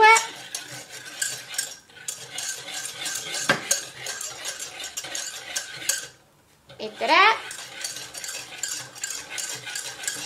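A wire whisk beats liquid in a pot with rapid, rhythmic clinks and sloshing.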